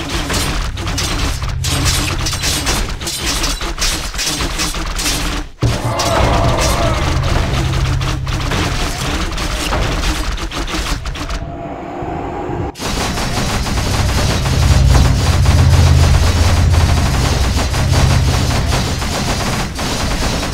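Weapons clash and strike rapidly in a battle.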